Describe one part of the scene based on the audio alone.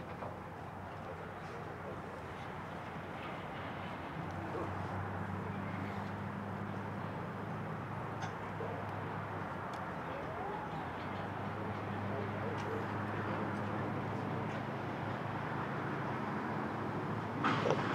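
A concert band plays outdoors with brass and woodwinds.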